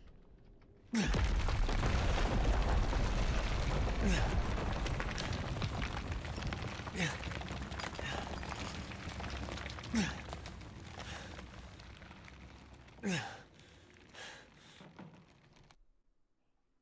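A deep rumbling roar rolls on and slowly fades.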